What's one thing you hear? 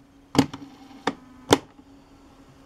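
Plastic buttons on a tape player click.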